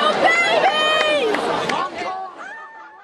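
A man shouts with excitement.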